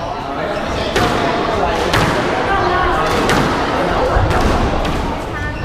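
A squash ball smacks sharply off racquets and walls, echoing in a hard-walled court.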